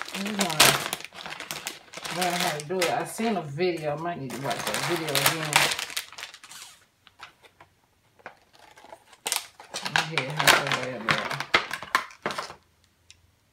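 A plastic package crinkles as hands handle it.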